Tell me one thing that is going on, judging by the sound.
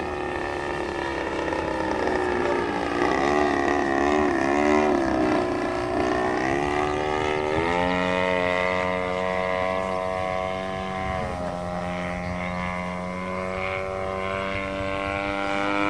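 A model plane's small engine whines overhead, rising and falling in pitch as the plane turns.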